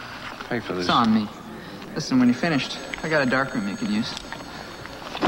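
An older man talks in a calm, close voice.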